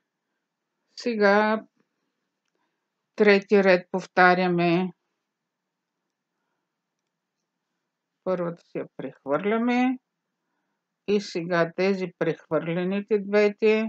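A woman speaks calmly close to the microphone, explaining.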